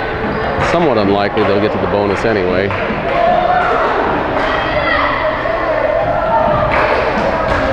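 A small crowd chatters in a large echoing hall.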